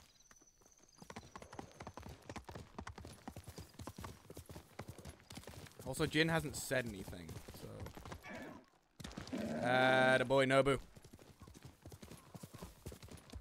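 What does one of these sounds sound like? Horse hooves thud in a quick rhythm on soft ground.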